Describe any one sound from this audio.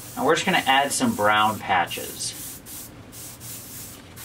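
An airbrush hisses in short bursts of spray.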